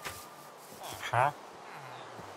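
A villager character grunts in a low, nasal voice.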